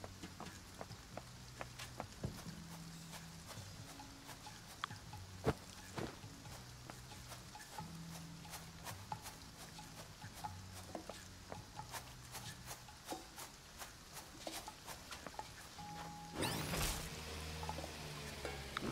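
Soft game music plays steadily.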